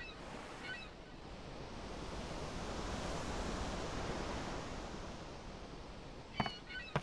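Waves wash softly against a ship's hull.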